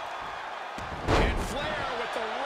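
A wrestler's body slams heavily onto the ring mat.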